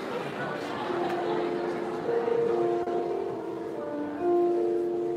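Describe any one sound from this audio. A piano plays a few steady notes.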